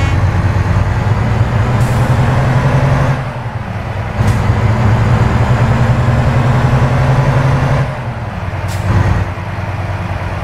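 A truck engine rumbles low and steady, easing off briefly now and then.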